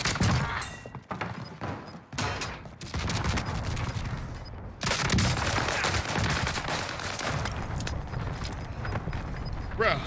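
Gunfire rattles rapidly in a video game.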